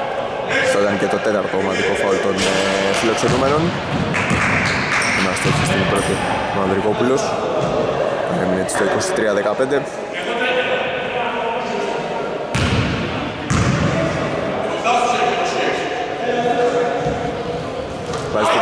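Men shout and talk across a large echoing hall.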